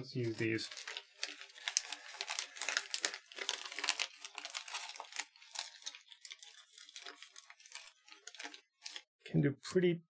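Cables and plastic parts rustle and click in handling.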